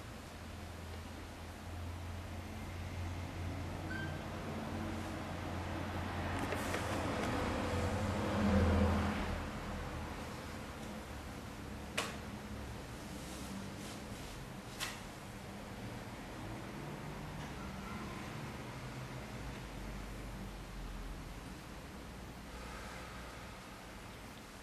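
A man speaks calmly and quietly nearby.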